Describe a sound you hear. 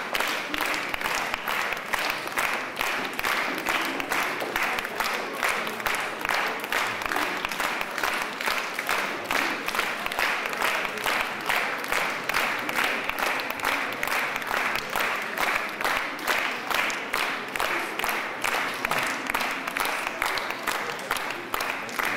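A crowd shuffles past with many footsteps on a hard floor, in a large echoing hall.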